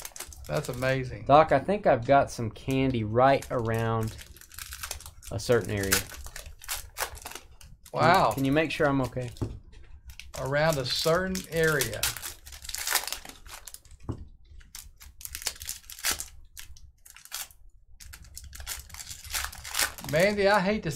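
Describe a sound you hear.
Foil card packs crinkle and rustle in hands.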